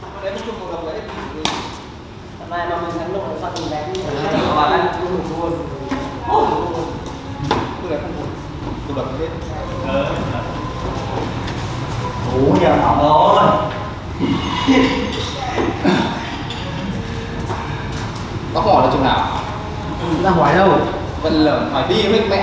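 Badminton rackets strike a shuttlecock with sharp pops.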